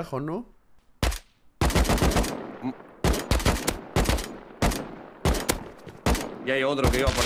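Gunshots fire in quick bursts, with echoing reports.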